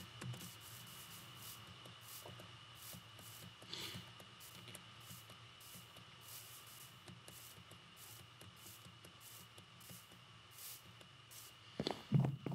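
Footsteps crunch softly on grass at a steady walking pace.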